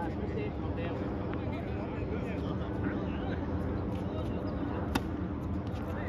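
A tennis racquet strikes a ball.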